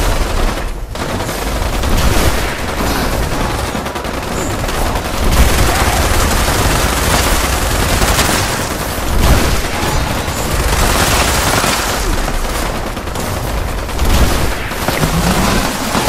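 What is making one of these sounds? A huge creature roars and screeches.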